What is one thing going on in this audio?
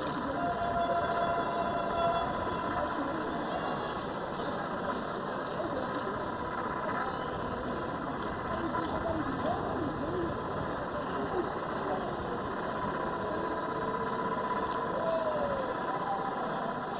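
A crowd murmurs and chatters in the open air.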